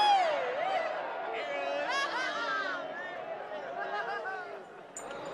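Several men sing together in a held, flowing melody.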